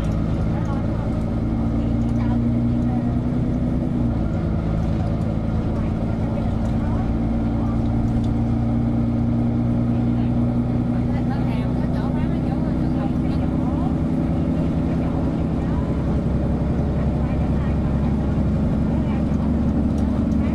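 The bus rattles and creaks as it rolls.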